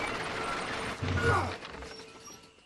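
A heavy wooden crate thuds down onto planks.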